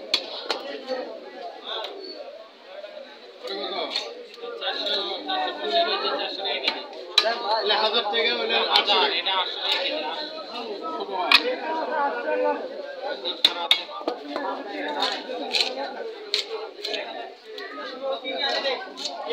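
Fish is scraped and cut against an upright blade with wet, rasping strokes.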